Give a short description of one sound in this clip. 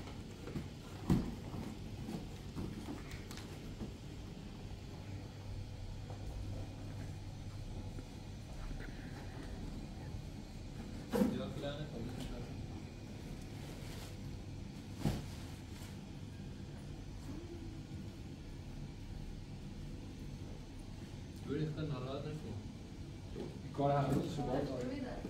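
Cardboard boxes thump and scrape on a floor.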